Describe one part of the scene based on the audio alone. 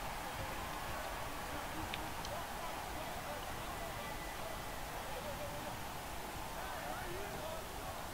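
A large crowd murmurs and cheers steadily in an echoing arena.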